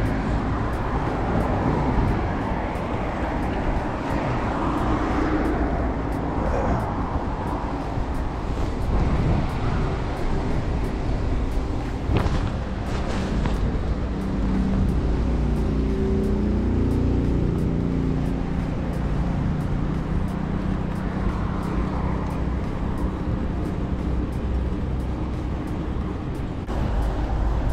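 Bicycle tyres roll steadily over asphalt.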